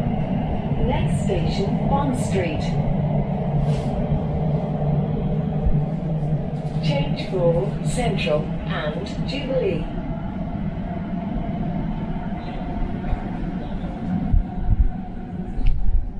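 A train rumbles and hums steadily as it travels along the track.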